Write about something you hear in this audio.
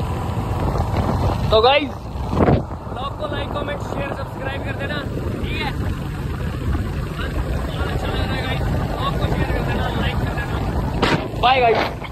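A motorcycle engine hums while riding.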